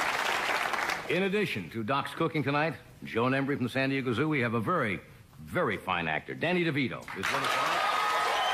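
A man speaks with animation to an audience.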